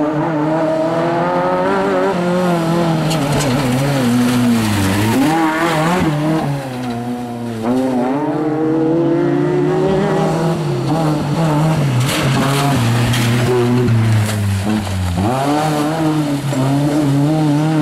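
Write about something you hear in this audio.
A car engine roars and revs hard, rising and falling in pitch.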